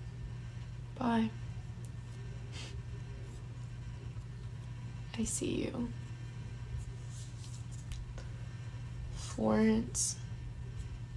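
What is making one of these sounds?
A young woman speaks softly in short bursts, close by.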